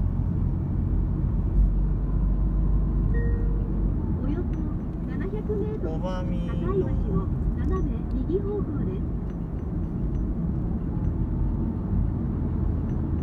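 A car engine hums steadily with road rumble from inside the moving car.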